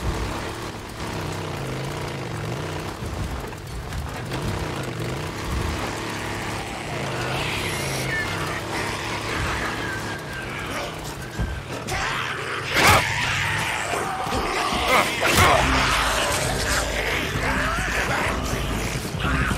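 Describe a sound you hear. A motorcycle engine rumbles steadily as it rides along a dirt track.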